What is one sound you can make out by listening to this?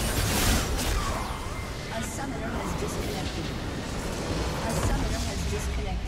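Loud battle effects boom and crackle in a video game.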